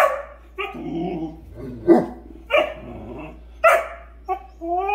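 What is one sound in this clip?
A small dog barks sharply.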